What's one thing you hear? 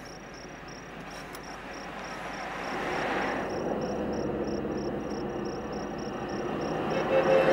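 A car approaches with its engine growing louder.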